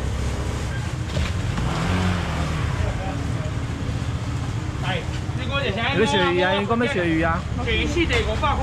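A busy crowd murmurs in the background.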